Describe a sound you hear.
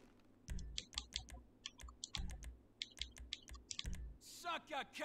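Soft menu clicks tick quickly, one after another.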